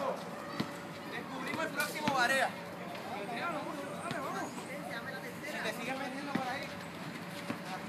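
Young men shout and call out outdoors during a game.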